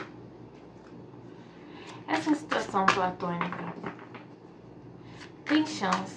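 Cards are shuffled and riffled by hand.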